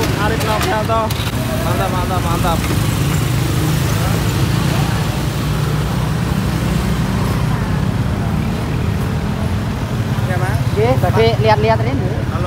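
Young men talk and laugh loudly close by, outdoors.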